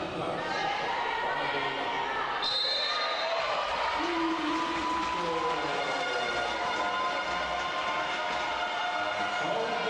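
Sneakers squeak on a hard floor in a large echoing hall.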